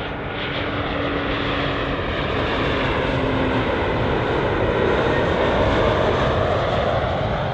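A jet airliner roars steadily overhead as it flies in low.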